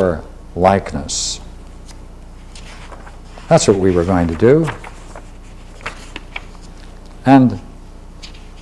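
An elderly man reads aloud slowly, close by.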